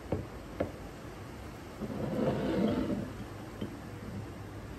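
A spoon stirs and clinks inside a mug.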